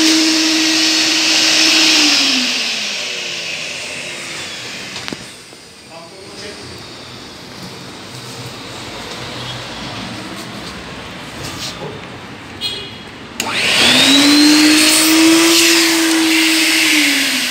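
A switch clicks on a vacuum cleaner.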